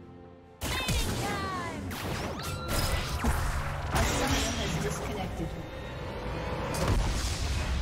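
Magic spells zap and crackle in a game battle.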